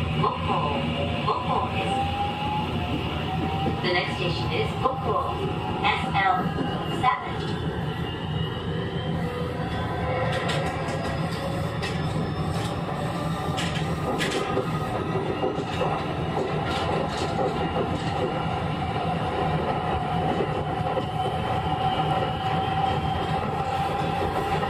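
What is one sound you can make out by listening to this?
Train wheels squeal on a curve.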